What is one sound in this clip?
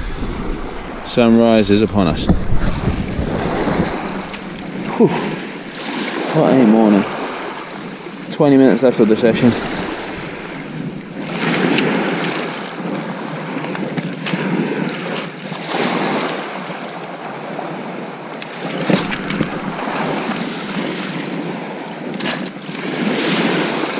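Small waves wash up and draw back over shingle.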